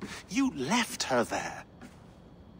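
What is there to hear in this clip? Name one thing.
A middle-aged man speaks calmly up close.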